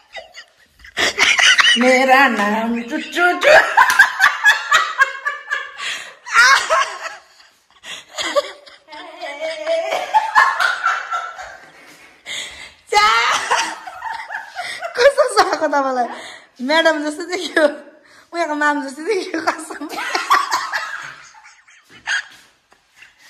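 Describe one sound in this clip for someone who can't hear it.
A young woman talks animatedly and laughs close by.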